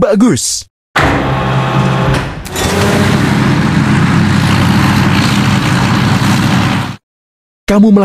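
A heavy machine's engine rumbles and drives away.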